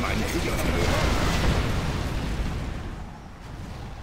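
A huge explosion booms and rumbles, then fades away.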